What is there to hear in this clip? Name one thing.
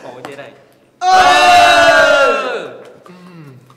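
A group of young people cheers loudly and shrieks.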